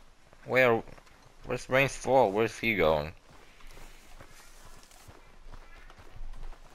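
Footsteps thud on a dirt path.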